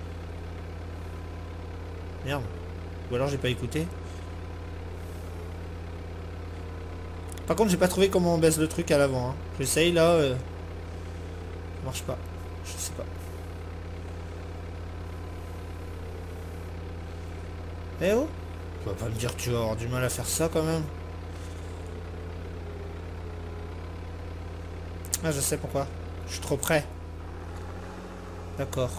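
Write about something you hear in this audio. A diesel engine hums steadily.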